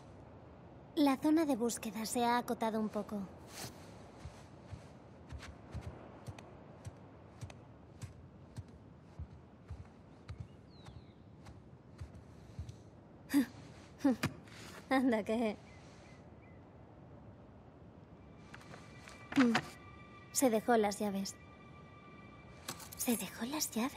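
A young woman speaks quietly to herself.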